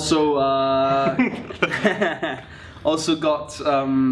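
Young people laugh together.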